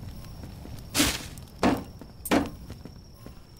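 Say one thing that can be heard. Plants rustle in short bursts.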